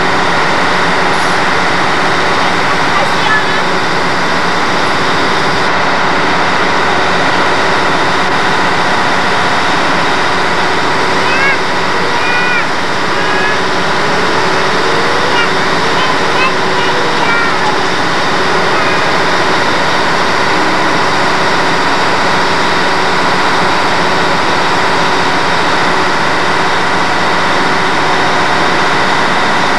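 A crowd murmurs steadily outdoors.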